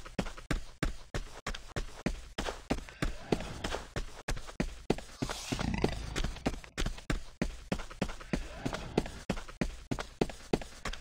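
Footsteps patter quickly and steadily on the ground.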